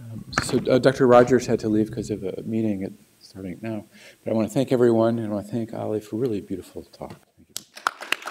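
A man speaks through a microphone in a large room.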